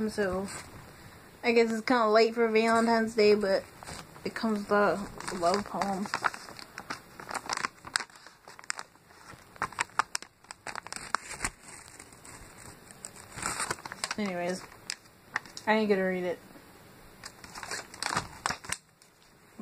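Paper packaging rustles and crinkles in hands.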